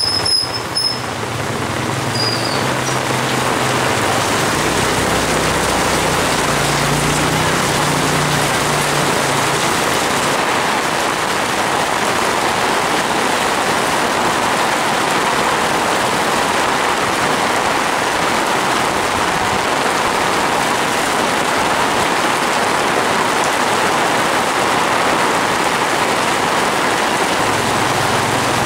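Heavy rain pours down steadily outdoors, splashing onto wet ground.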